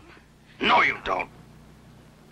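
A boy cries out in distress.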